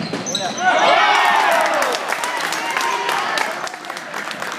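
A crowd of spectators cheers and shouts loudly.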